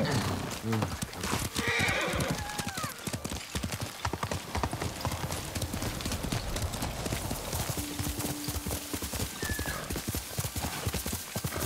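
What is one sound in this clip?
Horse hooves gallop quickly over the ground.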